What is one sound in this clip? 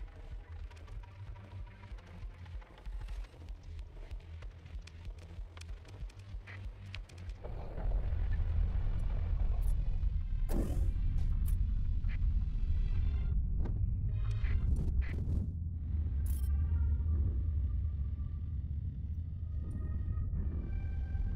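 Short electronic beeps and clicks sound now and then.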